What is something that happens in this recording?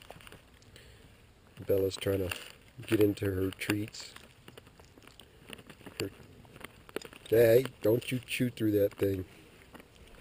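A dog chews at a crinkling plastic wrapper close by.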